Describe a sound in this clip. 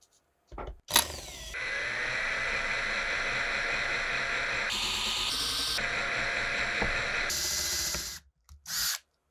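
An electric drill whirs as it bores into a rusted screw.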